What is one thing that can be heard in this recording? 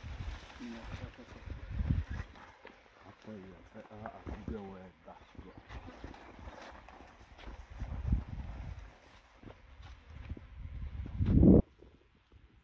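Leafy branches rustle and snap as people push through dense brush.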